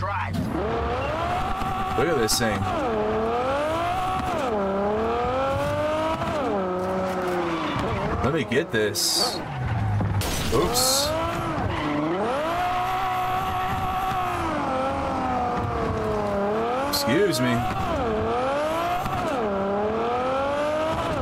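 A car engine revs up and down as a car speeds along.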